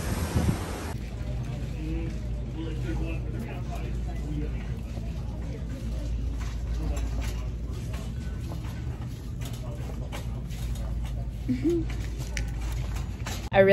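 A young woman talks quietly and close by.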